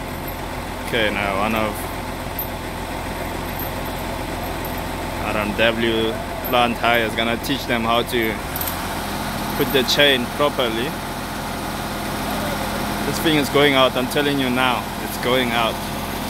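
Men talk to each other outdoors.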